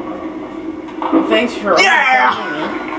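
Bowling pins clatter as a ball strikes them, heard through a television speaker.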